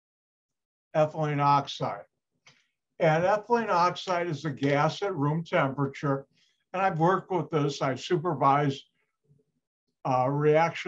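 A middle-aged man speaks calmly through a microphone, as on an online call.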